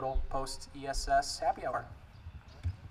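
A young man speaks through a microphone outdoors.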